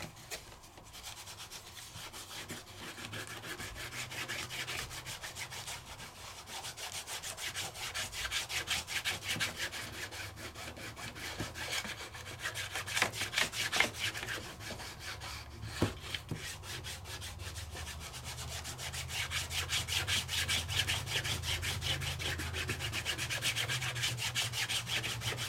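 An ink pad rubs quickly back and forth across paper with a dry, scratchy sound.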